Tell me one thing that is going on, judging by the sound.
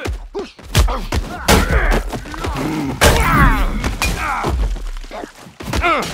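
Heavy blows land with wet, squelching thuds.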